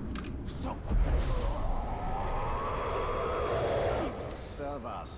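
A magical whoosh swells with a rising and falling hum, then fades.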